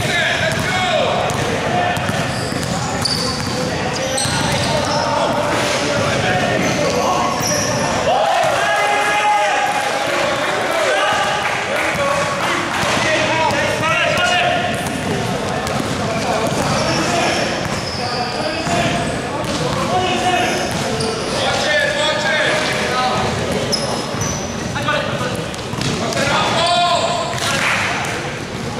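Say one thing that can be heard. Young men shout and call out in a large echoing hall.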